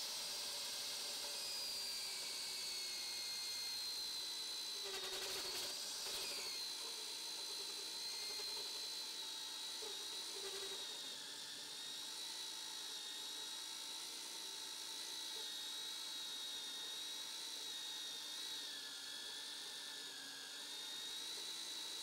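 A milling cutter whines steadily as it cuts into metal.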